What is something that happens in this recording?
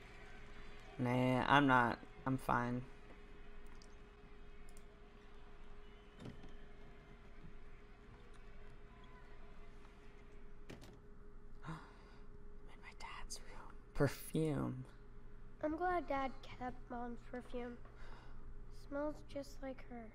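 A young boy speaks softly and calmly.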